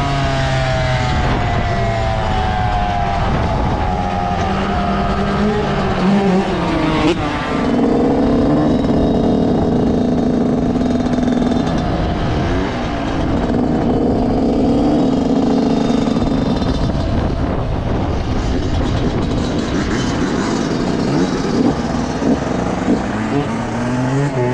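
A dirt bike engine roars close by, its pitch rising and falling as it speeds up and shifts.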